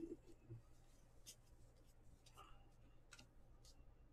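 Cards slide and flick against each other as they are shuffled.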